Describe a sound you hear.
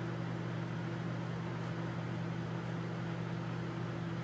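A plastic petri dish is set down on a wire rack.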